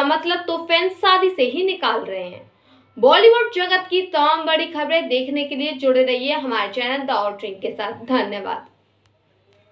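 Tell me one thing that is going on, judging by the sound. A young woman speaks earnestly and close to a microphone.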